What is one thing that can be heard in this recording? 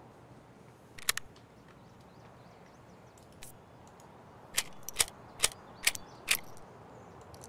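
Short clicks sound as game inventory items are picked up and dropped.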